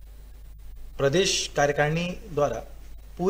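A man speaks calmly into microphones, close by.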